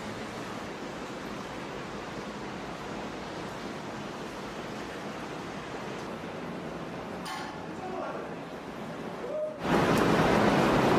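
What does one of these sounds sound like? Water flows steadily through an echoing tunnel.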